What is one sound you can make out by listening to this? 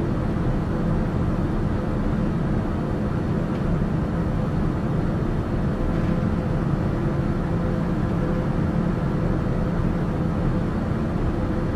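A turboprop engine drones steadily at cruise, heard from inside the cockpit.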